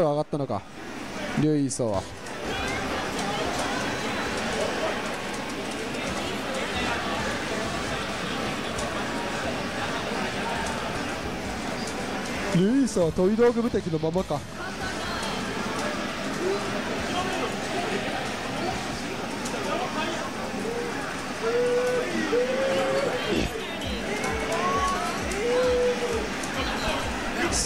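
Electronic video game music plays throughout.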